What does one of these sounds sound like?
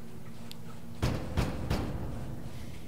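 A metal door slams shut with a loud bang.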